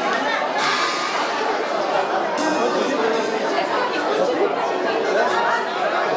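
A crowd of men and women chatters loudly close by.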